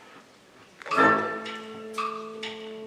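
An orchestra starts playing.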